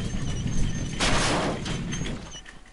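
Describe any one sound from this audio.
A door swings open.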